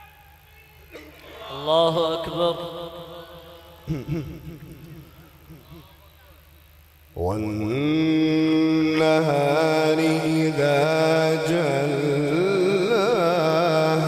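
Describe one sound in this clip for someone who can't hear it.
A young man chants melodiously into a microphone, heard through loudspeakers.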